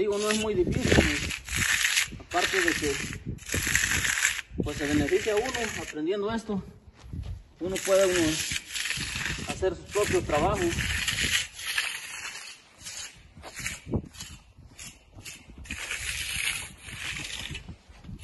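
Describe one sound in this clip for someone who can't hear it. A hand tool scrapes along wet concrete in repeated strokes.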